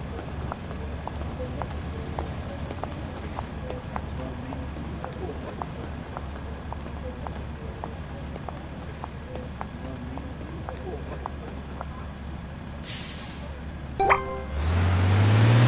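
A bus engine idles with a low hum.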